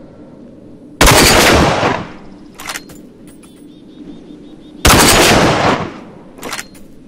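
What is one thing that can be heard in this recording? A rifle fires with a loud, sharp blast that echoes away.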